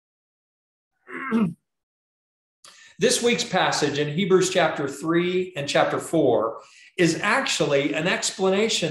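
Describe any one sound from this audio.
A middle-aged man speaks with animation through a microphone on an online call.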